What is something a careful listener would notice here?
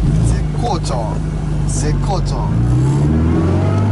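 A man talks inside a moving car.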